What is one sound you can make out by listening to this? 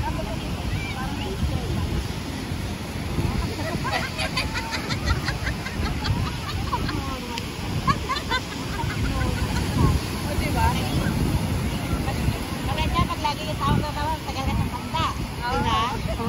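Wind blows across the microphone.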